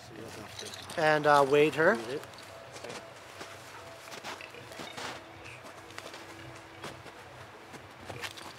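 An older man speaks calmly up close.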